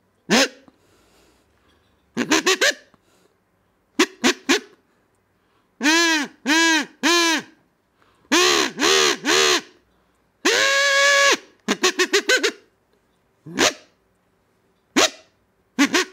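A small insect chirps in short, repeated bursts.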